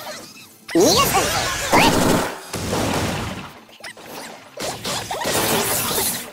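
Loud blasts and whooshes of game attacks burst out in quick succession.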